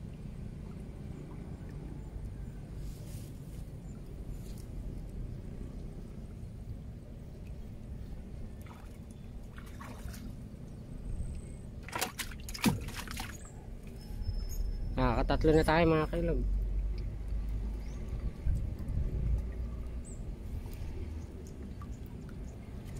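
Water sloshes and splashes as a man wades through it.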